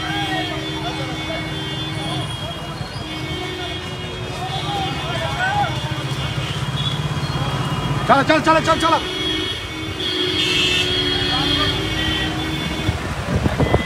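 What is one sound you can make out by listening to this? Motorbike engines hum and putter close by.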